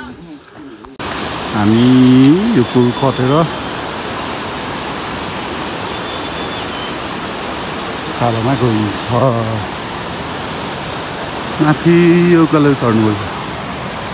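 A river rushes steadily over rocks.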